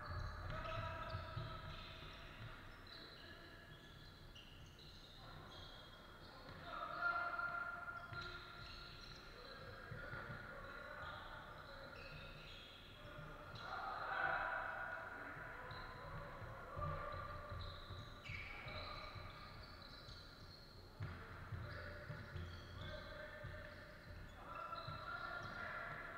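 A basketball bounces on the floor with dull thuds.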